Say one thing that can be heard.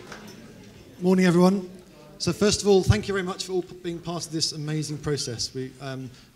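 A young man speaks calmly into a microphone over loudspeakers.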